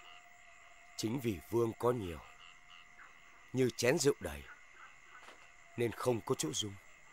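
A man speaks calmly and deliberately, close by.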